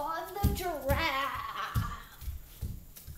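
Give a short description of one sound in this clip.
A child sings in a high voice close by.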